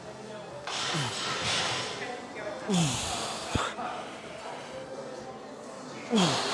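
A man breathes out hard and loudly with each effort, close by.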